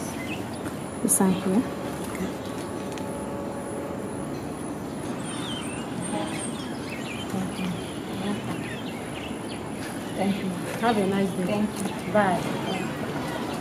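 Another woman answers in a calm voice.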